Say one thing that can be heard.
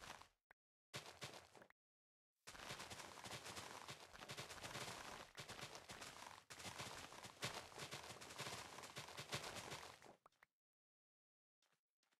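Items pop with small soft clicks.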